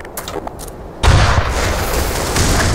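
A rocket launcher fires with a loud roaring blast.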